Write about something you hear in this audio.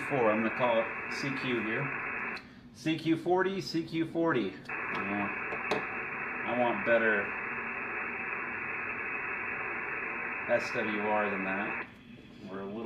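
A radio hisses with steady static from a loudspeaker.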